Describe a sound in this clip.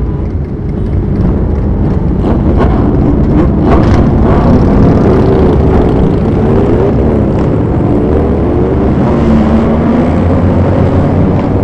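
Motorcycle engines rev up and roar past.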